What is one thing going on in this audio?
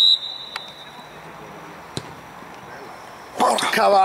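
A football is kicked with a thud.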